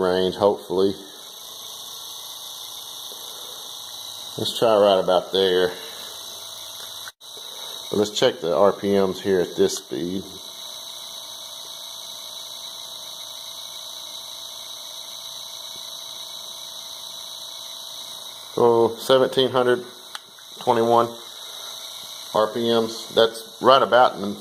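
An electric motor whirs steadily.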